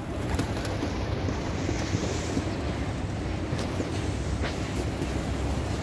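Pigeons peck and shuffle close by.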